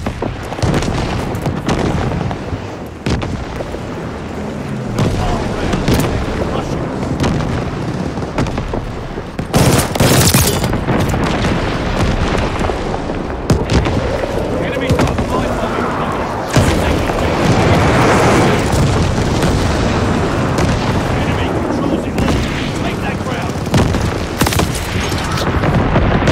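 Gunfire cracks in rapid bursts.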